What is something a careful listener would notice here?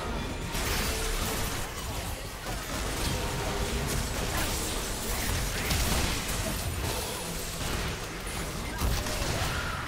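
Magic spells and weapons clash and burst in a rapid fight.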